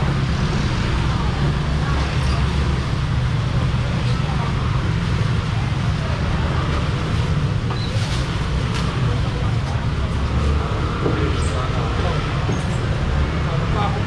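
A busy crowd murmurs and chatters all around.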